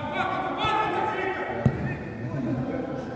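A man shouts across a large echoing hall.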